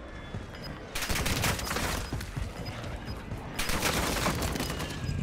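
Loud gunshots ring out with a short echo.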